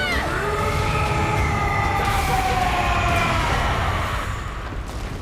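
A giant creature lets out a deep, wavering roar.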